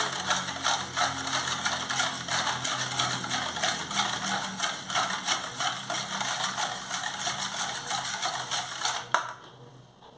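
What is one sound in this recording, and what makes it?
A wire whisk beats rapidly against a metal bowl, rattling and scraping.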